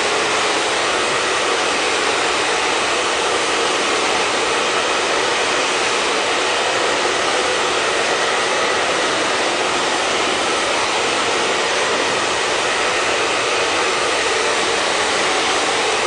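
A hair dryer blows with a loud, steady whoosh close by.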